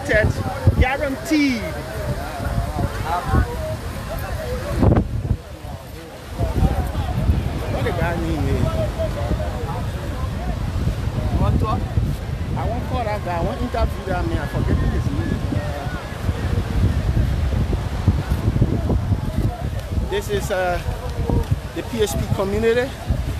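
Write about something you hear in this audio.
Young men talk and call out to each other nearby, outdoors.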